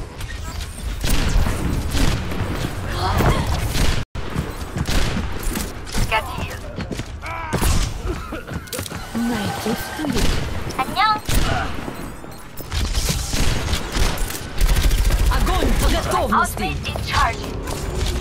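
Explosions boom with deep rumbles.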